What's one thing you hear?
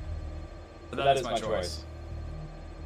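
A young man speaks briefly and animatedly into a microphone, close up.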